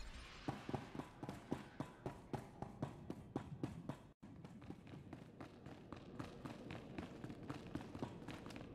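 Footsteps clank quickly and evenly on a metal floor.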